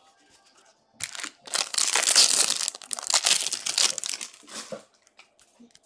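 Plastic wrapping crinkles loudly as a card pack is torn open.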